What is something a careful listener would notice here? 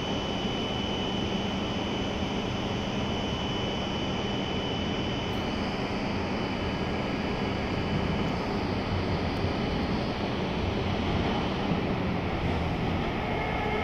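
A train approaches along the tracks with a low, growing rumble.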